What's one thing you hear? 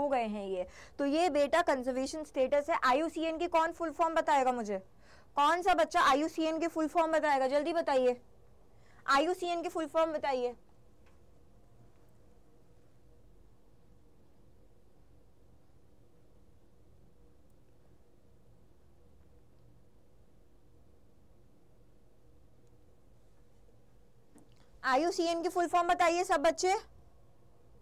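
A young woman speaks clearly and with animation into a close microphone, pausing now and then.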